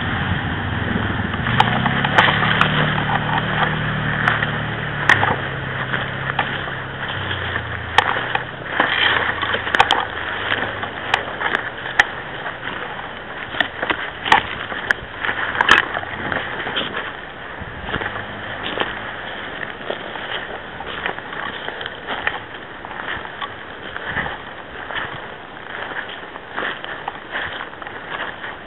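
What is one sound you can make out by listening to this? Footsteps crunch and rustle through dry undergrowth close by.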